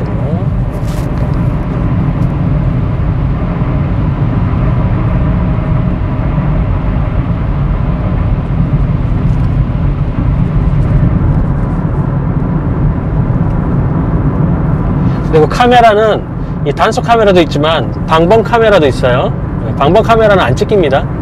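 A car engine hums steadily with a loud road rumble.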